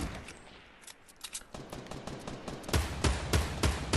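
Rapid gunshots crack in quick succession.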